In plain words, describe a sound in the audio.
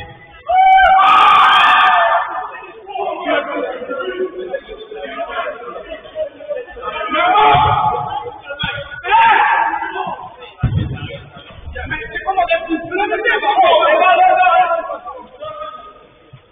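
Men shout to each other across a field.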